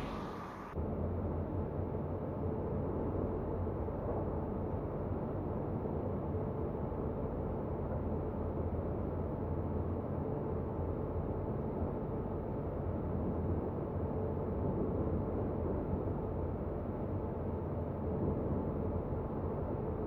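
A train's motor hums low and steady.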